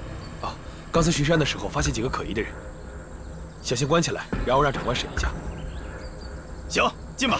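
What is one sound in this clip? A second young man answers calmly, close by.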